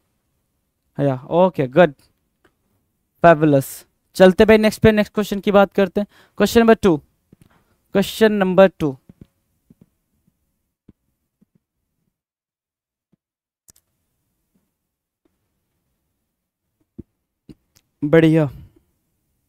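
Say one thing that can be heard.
A man speaks with animation through a close headset microphone, in short bursts with pauses.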